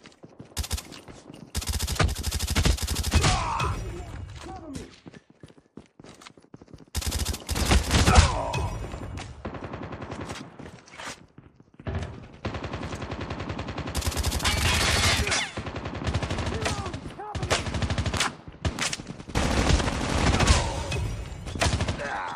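Automatic rifle fire bursts in a video game.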